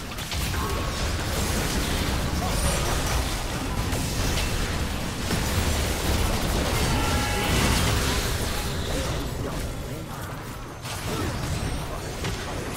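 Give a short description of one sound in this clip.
Magic spells crackle and burst in a fast fight.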